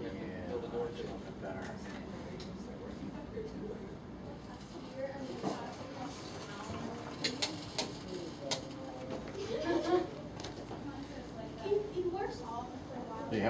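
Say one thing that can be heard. A printing press runs with a steady mechanical clatter and sharp clacks.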